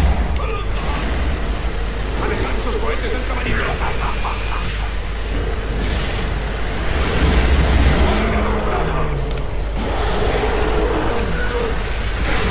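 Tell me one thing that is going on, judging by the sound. Rapid gunfire rattles.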